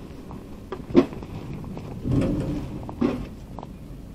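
A metal mailbox flap clacks shut.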